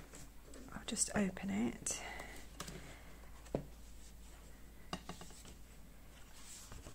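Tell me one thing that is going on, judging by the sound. A stiff book page turns over with a soft rustle.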